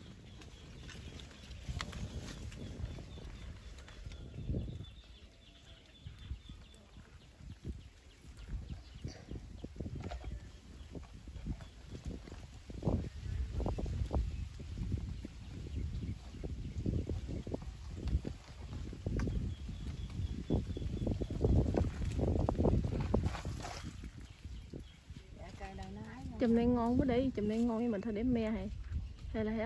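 Wind blows in gusts outdoors.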